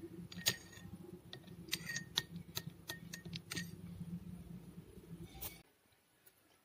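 A metal spoon clinks against a glass bowl while stirring.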